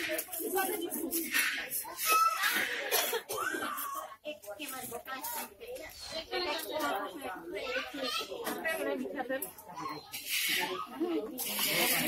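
Several women talk with one another nearby.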